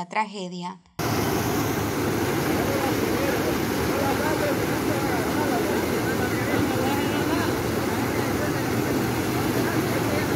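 Fast floodwater rushes and roars loudly.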